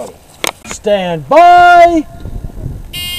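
A shot timer beeps sharply.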